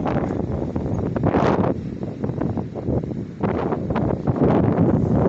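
Wind blows in strong gusts outdoors, rumbling loudly.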